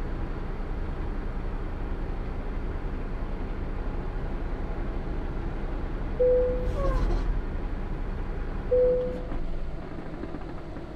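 A truck engine hums low and steady, then dies away.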